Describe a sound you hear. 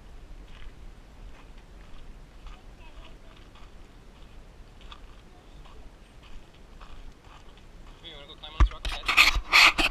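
A small child's footsteps crunch on gravel.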